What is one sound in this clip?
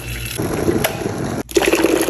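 Water bubbles and boils in a kettle.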